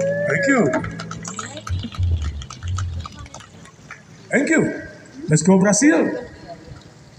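A man sings into a microphone over a loudspeaker.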